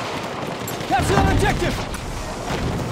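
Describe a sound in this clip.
A gun fires close by, with a heavy blast.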